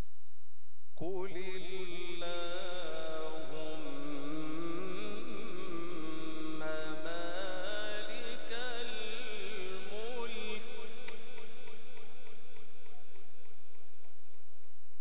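A man chants in a long, melodic voice through a microphone and loudspeakers.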